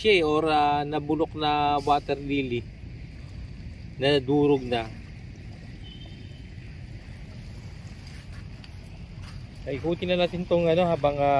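Shallow water laps gently against a muddy shore.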